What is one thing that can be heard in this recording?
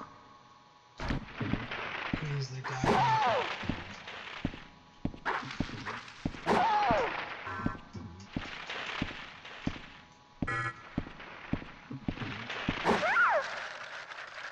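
A sword swishes and strikes again and again.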